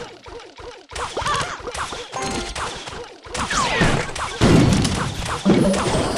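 Video game battle effects clash, pop and squeal in quick bursts.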